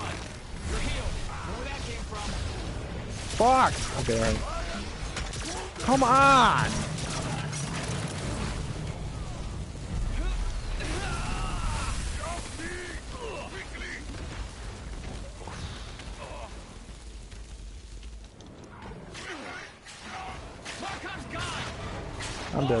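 Energy guns fire in rapid bursts.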